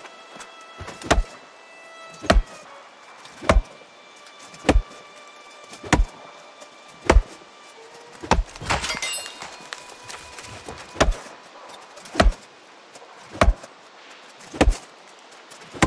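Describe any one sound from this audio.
An axe chops into a tree trunk with heavy, regular thuds.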